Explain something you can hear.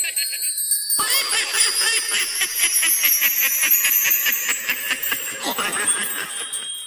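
Coins jingle and clink rapidly.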